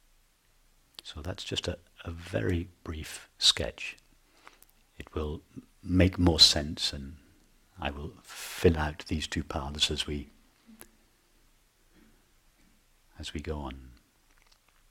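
A middle-aged man speaks calmly and slowly into a nearby microphone, with long pauses.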